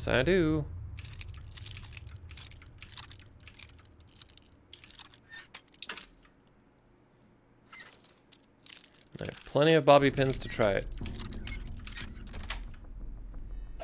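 A metal pick scrapes and clicks inside a lock.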